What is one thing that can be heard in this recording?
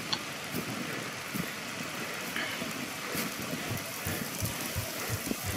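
Steady rain falls outdoors.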